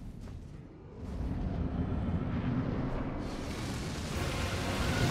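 A low, rumbling roar swells and grows louder.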